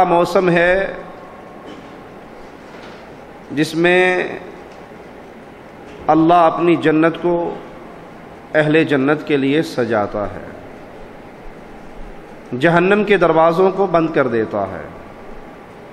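A man speaks slowly and forcefully through a microphone in short bursts with pauses.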